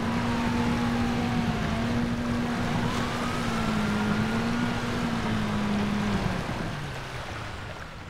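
Water splashes and churns around a speeding hull.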